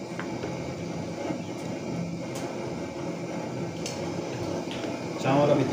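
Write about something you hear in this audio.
A wooden spoon stirs through boiling water.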